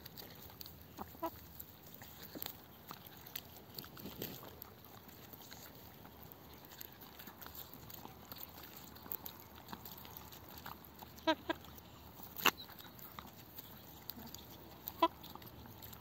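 Hens cluck softly nearby.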